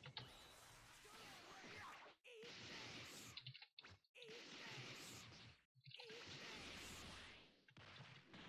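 Energy blasts whoosh and crackle in bursts.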